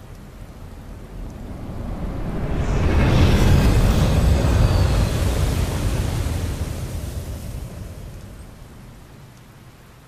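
A flying craft roars low overhead with loud jet engines, then fades into the distance.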